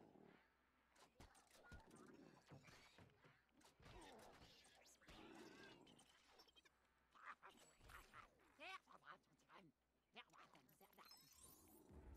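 Blaster shots zap and crackle.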